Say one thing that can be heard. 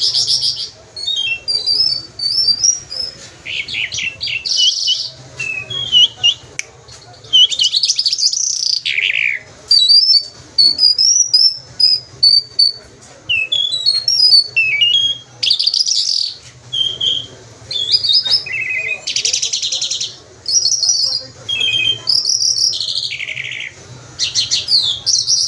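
A small caged bird sings loud, quick, high chirps and trills close by.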